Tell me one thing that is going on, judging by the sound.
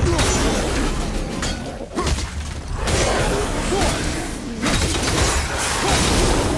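Heavy blows land and clang in a fight.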